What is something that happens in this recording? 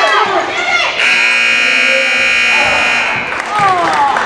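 A referee's whistle blows in a long shrill blast.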